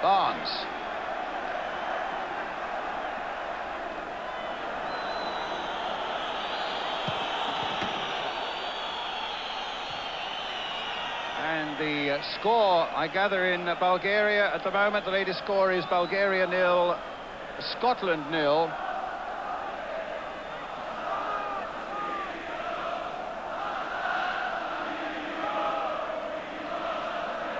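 A large crowd roars and murmurs in a stadium.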